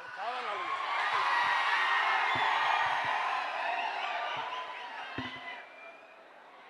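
A large crowd cheers and shouts in a big echoing hall.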